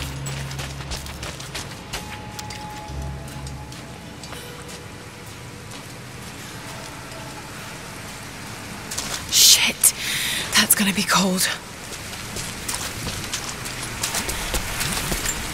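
Footsteps crunch on icy ground.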